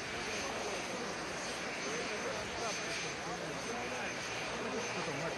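Heavy winter clothing rustles as men crowd together.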